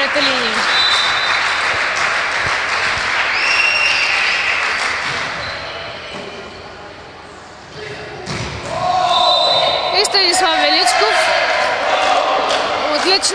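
A volleyball is struck with a thump.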